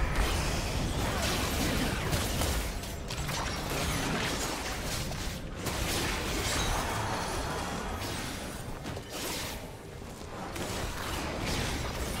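Magic blasts and sword hits crackle and thud in a fast fight.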